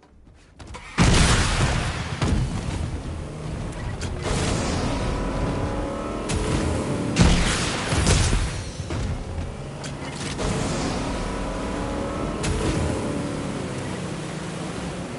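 A motorboat engine roars loudly.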